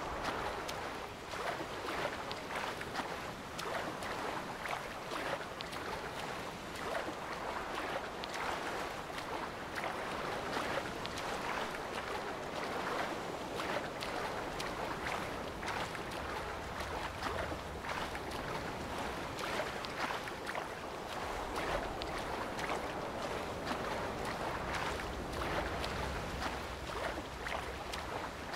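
A swimmer splashes steadily through choppy water.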